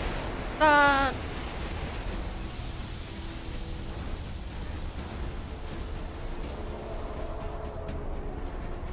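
Wind roars steadily in a sandstorm.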